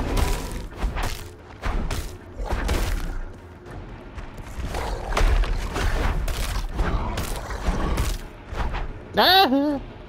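Heavy blows thud and crack in quick succession during a fight.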